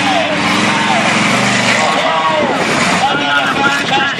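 Metal crunches as a heavy truck crushes cars.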